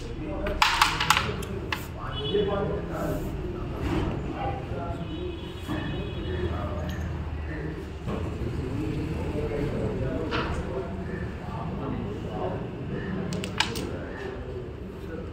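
A crowd of people talks and murmurs nearby.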